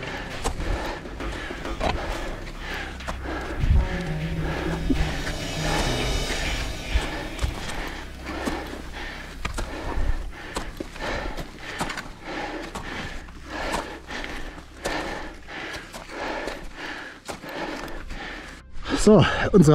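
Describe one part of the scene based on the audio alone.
Boots crunch steadily through snow, step after step.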